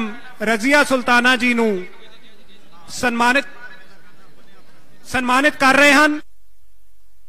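A man shouts slogans loudly through a loudspeaker.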